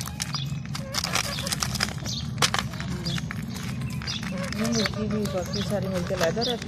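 Rabbits munch and crunch on pieces of carrot up close.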